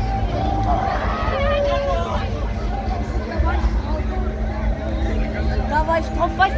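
A fairground ride's arm swings back and forth with a whoosh.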